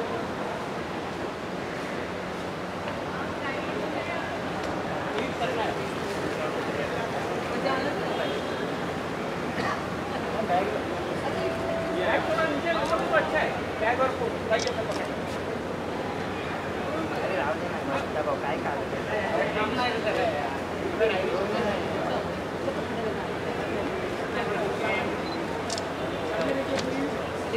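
A crowd of people chatter around in a busy, echoing space.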